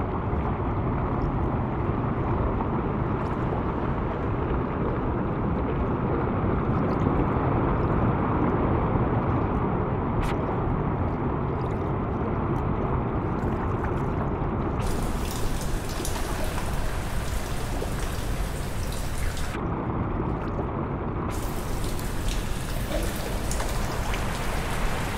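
Water pours into a pool with a deep, muffled rumble.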